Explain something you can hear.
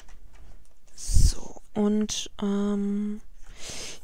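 Card stock rustles as it is lifted and moved.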